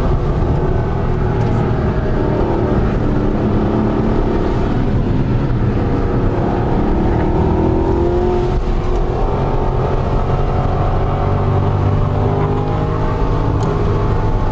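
A car engine roars steadily from inside the cabin, rising and falling in pitch as the car speeds up and slows.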